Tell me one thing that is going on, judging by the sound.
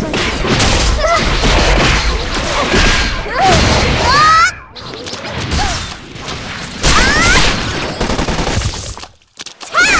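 Spell blasts and sword hits crash and whoosh in quick bursts.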